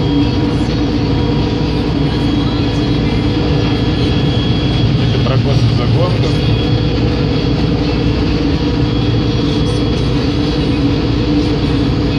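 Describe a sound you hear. A harvester's machinery rattles and whirs steadily.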